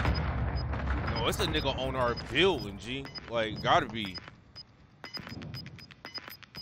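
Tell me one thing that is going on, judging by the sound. A handheld sensor gives short, high electronic beeps at a steady pace.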